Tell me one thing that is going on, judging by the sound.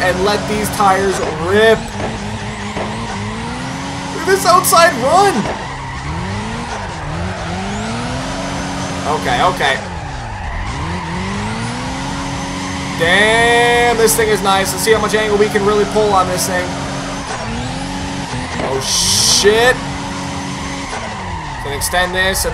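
A car engine revs high and shifts up and down in pitch as it drifts.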